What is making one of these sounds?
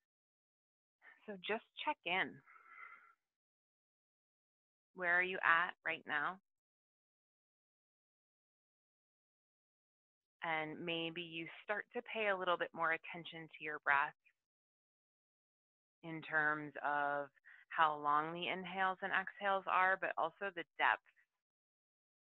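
A young woman speaks calmly into a headset microphone, pausing between phrases.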